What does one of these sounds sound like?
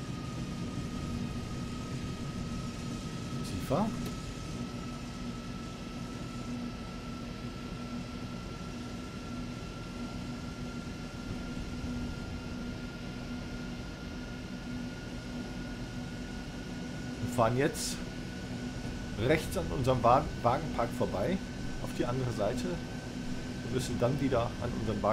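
An electric locomotive motor whines steadily, slowly rising in pitch.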